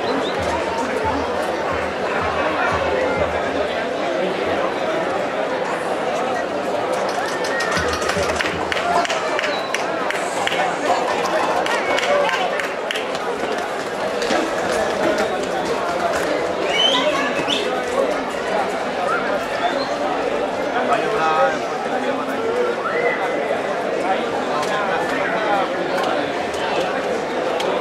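A large outdoor crowd chatters and shouts.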